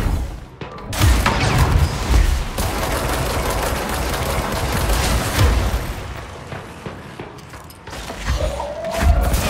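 Heavy thuds boom.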